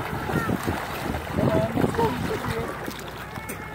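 Water splashes as a small child swims.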